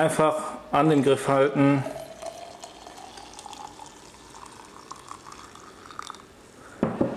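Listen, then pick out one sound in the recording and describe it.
Coffee pours into a glass jar with a rising gurgle as the jar fills.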